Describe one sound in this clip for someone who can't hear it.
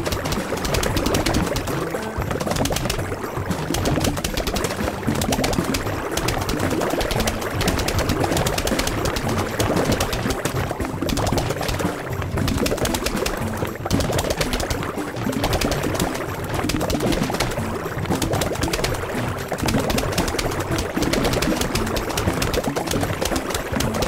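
Game plants fire rapid popping shots without pause.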